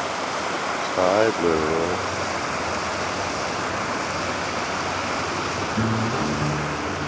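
Small waves lap gently against stones at the shore.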